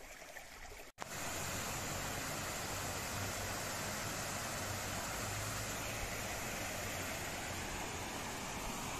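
A waterfall rushes and splashes steadily.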